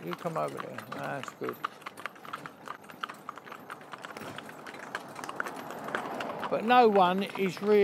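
Horses' hooves clip-clop steadily on a paved road.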